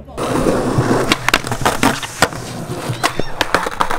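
A skateboard tail snaps and the board clacks on landing.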